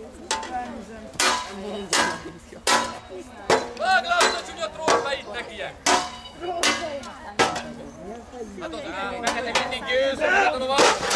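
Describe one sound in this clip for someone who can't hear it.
A crowd of men and women talk and call out outdoors.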